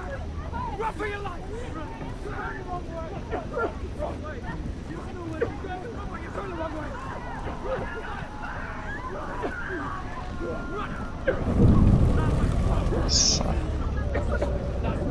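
Flames roar and crackle all around.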